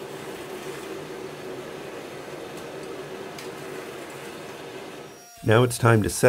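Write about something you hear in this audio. A gas forge roars steadily.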